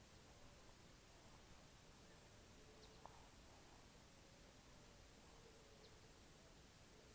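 Footsteps squelch softly on a muddy dirt track outdoors.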